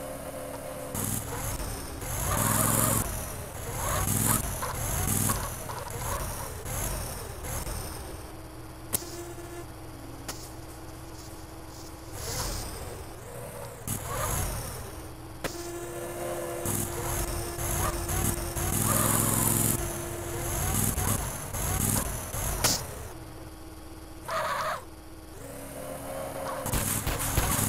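A forklift engine revs up and down.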